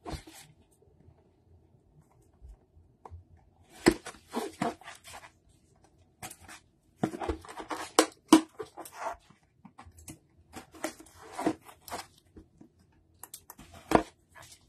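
A utility knife slices through plastic shrink wrap.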